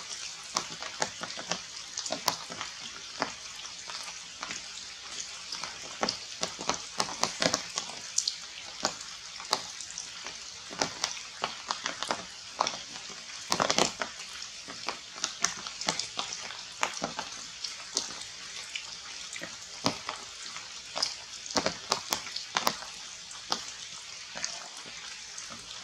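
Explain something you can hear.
Rain falls steadily on leaves, with drops pattering.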